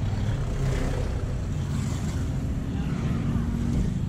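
A motorbike passes by.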